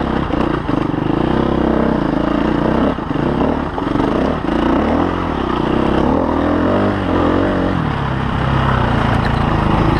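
A dirt bike engine revs hard and bursts in uneven surges close by.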